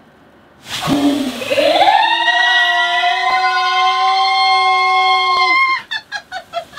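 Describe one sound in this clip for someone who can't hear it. A middle-aged woman screams loudly and long, close by.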